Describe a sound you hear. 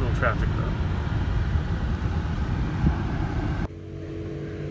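A car engine hums and tyres roll on a road.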